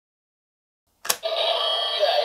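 A plastic toy button clicks sharply.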